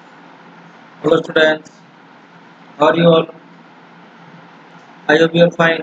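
A young man speaks calmly in short bursts, heard through a computer microphone.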